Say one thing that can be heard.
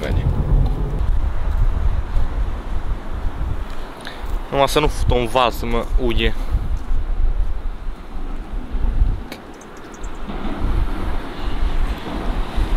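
Waves wash against a rocky shore.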